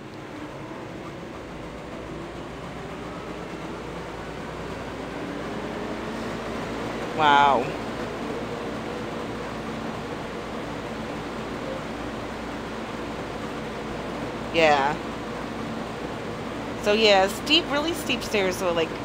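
A combine harvester engine hums steadily while cutting grain.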